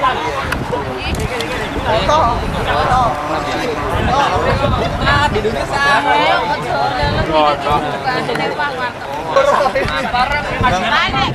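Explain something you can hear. A crowd of men and women chatter and talk over one another outdoors.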